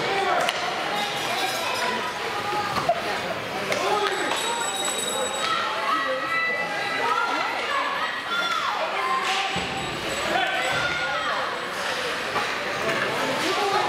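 Skates scrape and carve across ice in a large echoing arena.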